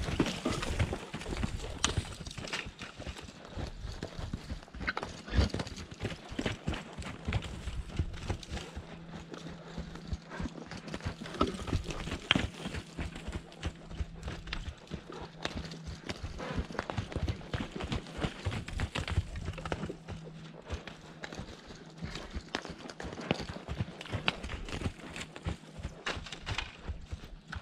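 A horse's hooves thud on dry dirt as it trots in circles.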